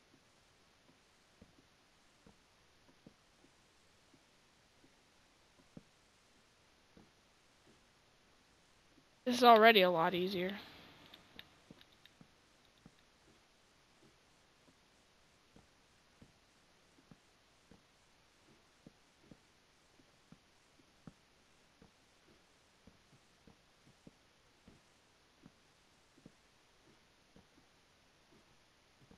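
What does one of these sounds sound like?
Soft, light taps of someone climbing a wooden ladder repeat at a steady pace.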